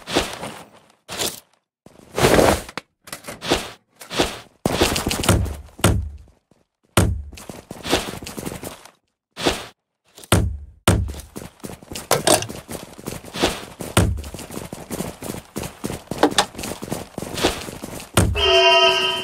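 Short rustles and clatters sound as gear is picked up in a game, one after another.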